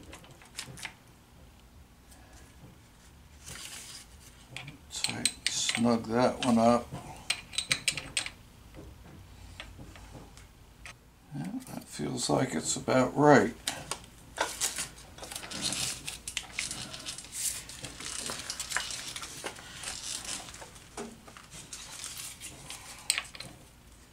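Metal parts clink and rattle as they are handled.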